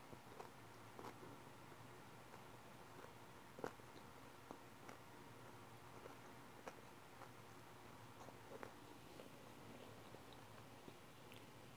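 A young woman makes soft clicking mouth sounds close to a microphone.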